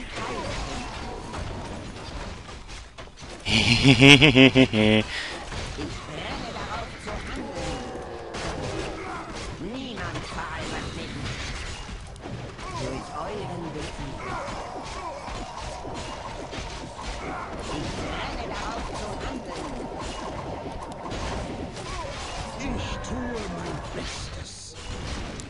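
Magic spells burst and crackle with ringing tones.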